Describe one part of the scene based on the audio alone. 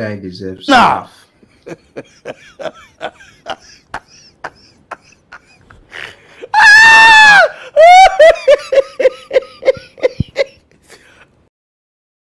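A man laughs loudly and uncontrollably into a microphone, with high shrieks and gasps.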